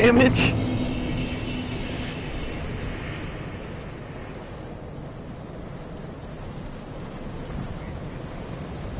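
Soft menu clicks tick repeatedly.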